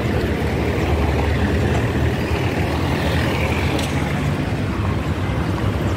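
Cars drive past on a paved road.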